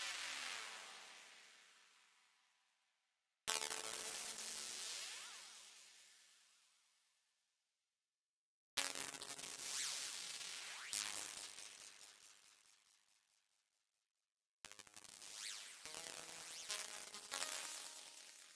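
Bright electronic synthesizer chords sound in bursts, each ringing out and slowly fading.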